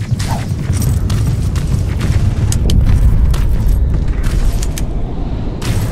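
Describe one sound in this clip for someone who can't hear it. Footsteps crunch over loose rubble.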